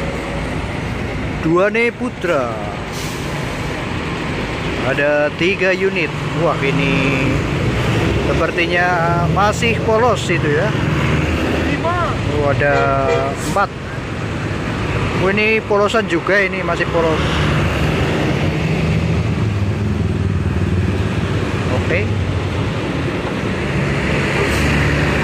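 Large diesel tour coaches rumble past, pulling away one after another.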